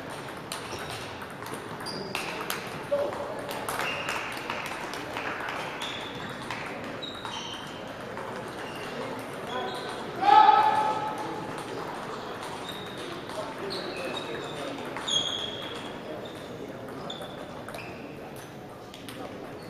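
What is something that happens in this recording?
A table tennis ball clicks back and forth off paddles and the table.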